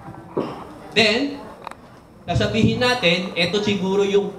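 A man speaks loudly through a loudspeaker in a large room.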